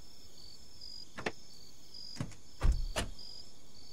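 A car door shuts with a thud.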